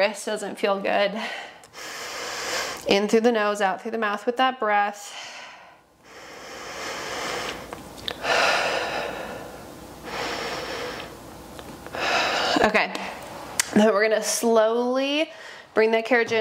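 A young woman speaks calmly and clearly into a nearby microphone.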